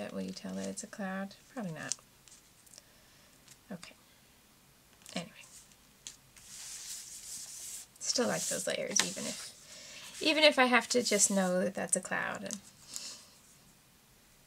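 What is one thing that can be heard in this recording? Paper rustles and slides softly under hands.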